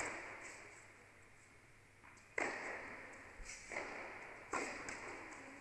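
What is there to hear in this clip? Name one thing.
A tennis ball is struck hard with a racket, echoing through a large indoor hall.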